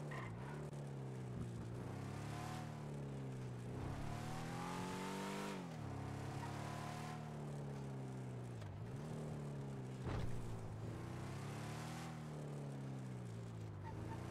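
Tyres screech on the road as the car turns sharply.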